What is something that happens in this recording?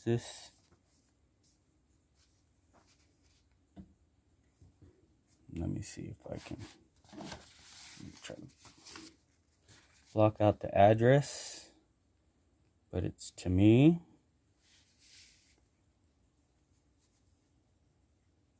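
Paper rustles as an envelope and sheets are handled.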